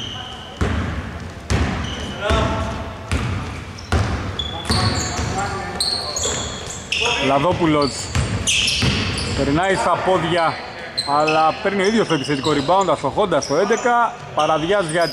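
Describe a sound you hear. A basketball bounces on a wooden court in a large echoing hall.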